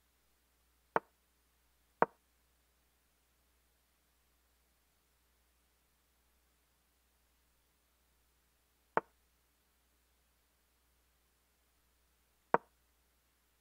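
A chess game's move sound clicks sharply now and then.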